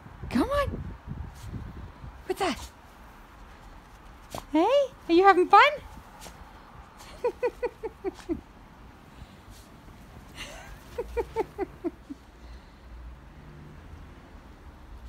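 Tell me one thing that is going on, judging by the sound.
A small dog bounds through deep snow, its paws crunching.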